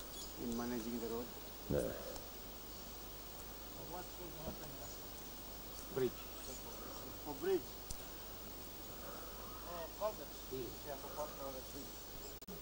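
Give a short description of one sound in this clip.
Men talk nearby outdoors in a relaxed way.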